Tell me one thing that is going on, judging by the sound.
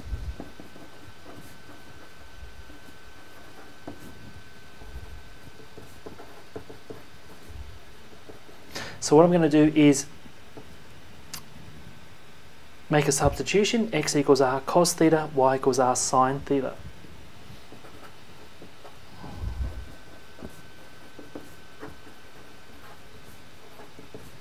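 A marker pen scratches and squeaks across paper.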